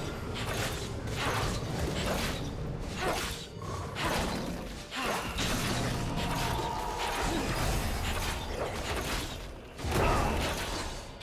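Magic spell effects whoosh and crackle in quick bursts.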